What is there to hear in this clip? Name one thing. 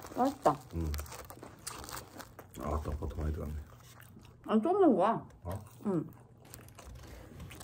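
Soft bread squishes as a young woman eats.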